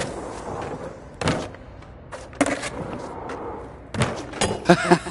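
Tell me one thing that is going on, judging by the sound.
Skateboard wheels roll and clatter on a hard surface.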